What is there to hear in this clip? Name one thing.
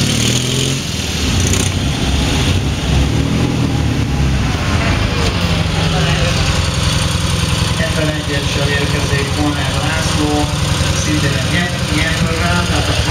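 A motorcycle engine rumbles and putters nearby.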